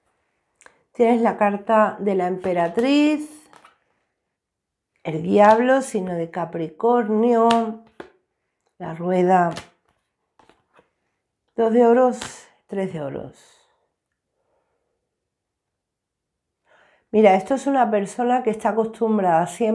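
A woman speaks calmly and close to a microphone.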